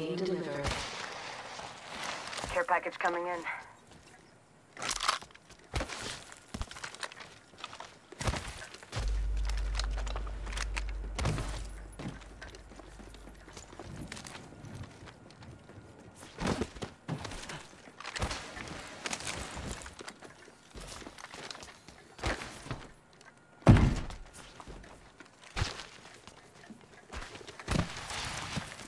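Footsteps patter quickly over hard ground.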